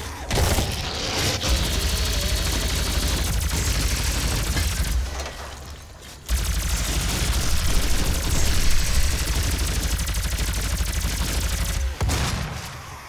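A plasma rifle fires rapid electric bursts in a video game.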